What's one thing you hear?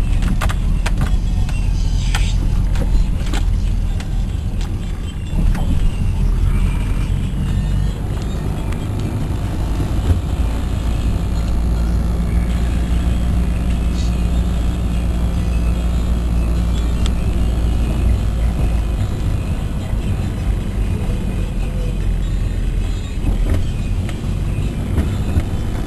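Wind roars around a moving car.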